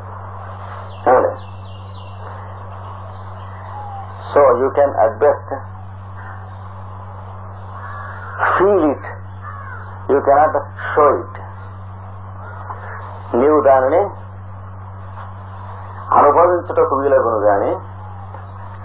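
An elderly man sings short phrases with long pauses between them.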